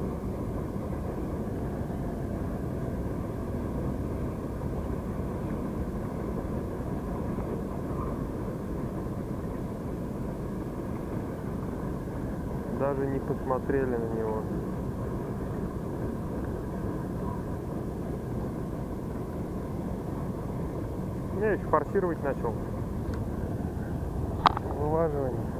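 Water laps gently against a small boat outdoors.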